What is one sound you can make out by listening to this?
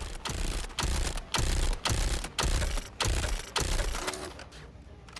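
Energy guns fire in rapid, loud bursts.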